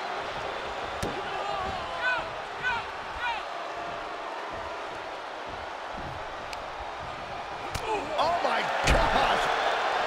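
Bodies slam onto a wrestling ring with heavy thuds.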